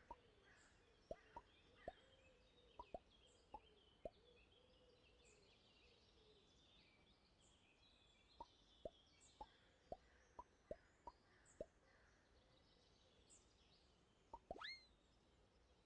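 Short plucked blips sound as game pieces move.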